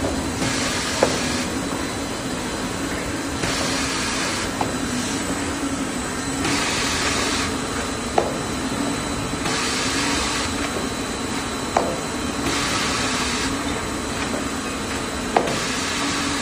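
A machine part clacks sharply at regular intervals.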